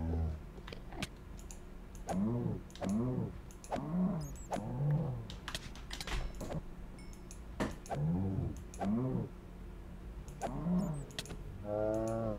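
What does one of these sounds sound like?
A blade strikes with sharp, quick hits.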